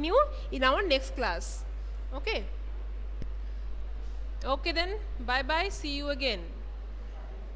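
A young woman speaks clearly and with animation, as if teaching.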